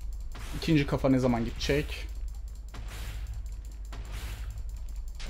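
A sword slashes at a creature.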